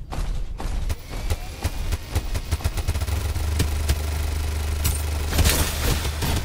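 Guns fire in rapid bursts from a mech.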